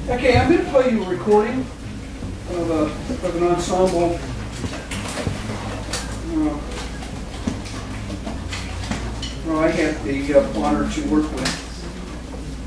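A man speaks to a group in a room.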